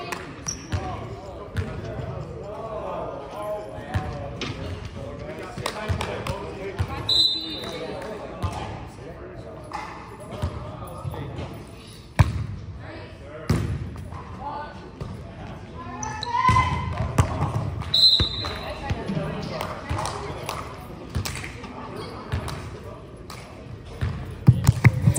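Young men and women talk and call out across a large echoing gym.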